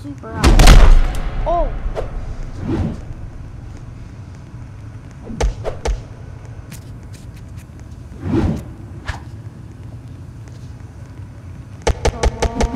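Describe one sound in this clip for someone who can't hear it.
Punches land with sharp, heavy thuds.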